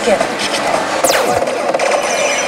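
A slot machine makes a quick sweeping whoosh effect.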